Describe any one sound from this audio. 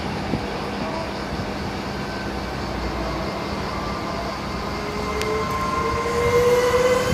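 Train wheels squeal on a curve.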